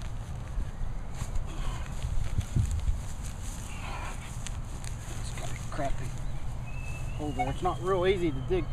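A hand trowel scrapes and digs into grassy soil.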